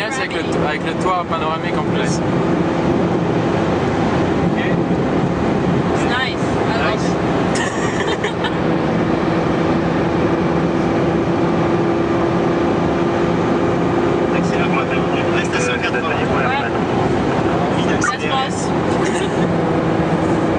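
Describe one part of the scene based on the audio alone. A man talks now and then inside the car.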